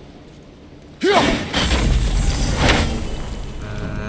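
Ice cracks and crashes loudly as an axe breaks through it.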